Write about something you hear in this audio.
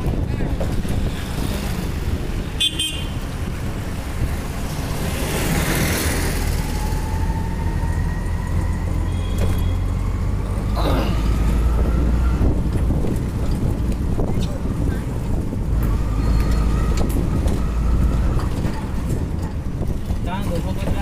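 An auto rickshaw engine rumbles steadily from close by.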